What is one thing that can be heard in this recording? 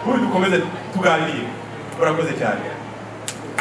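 A middle-aged man speaks into a microphone over loudspeakers in an echoing hall.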